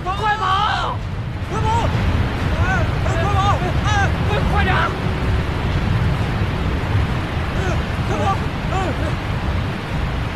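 Men shout in alarm outdoors.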